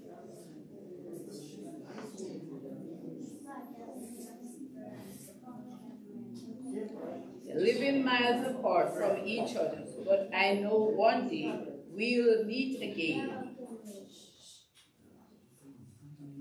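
A woman speaks into a microphone, heard through loudspeakers in an echoing room.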